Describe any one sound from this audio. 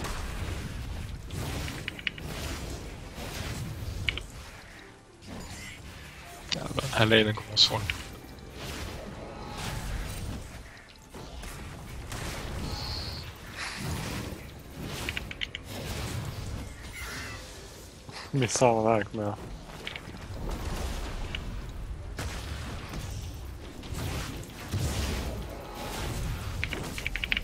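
Fantasy combat effects whoosh and crackle in quick bursts.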